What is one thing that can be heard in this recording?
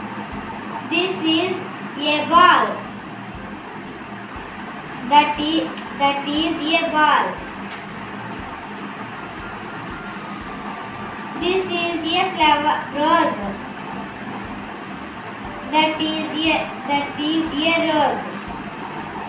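A young girl reads out short phrases slowly and clearly, close by.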